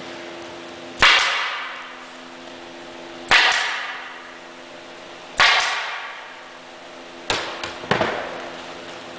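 A staple gun fires with sharp, loud snaps, several times.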